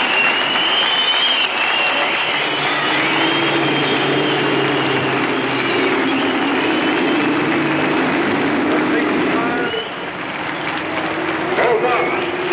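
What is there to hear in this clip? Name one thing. Racing car engines roar loudly as cars speed past.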